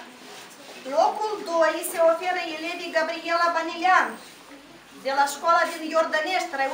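A woman reads out loud in a clear voice.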